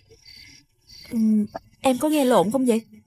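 A young woman speaks in a worried tone, close by.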